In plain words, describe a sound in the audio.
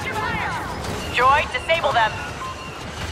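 A small robot chirps and beeps electronically.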